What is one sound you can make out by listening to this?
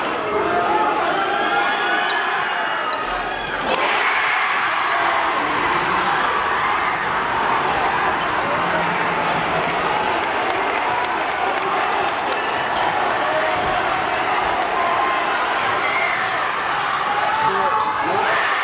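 A large crowd cheers loudly in an echoing gym.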